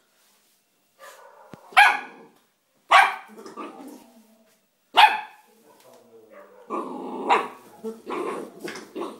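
A puppy barks in short, sharp yelps.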